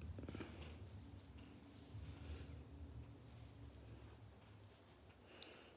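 Fingers rustle and rub against a microphone close by.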